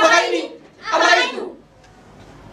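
A group of young men and women shout loudly together.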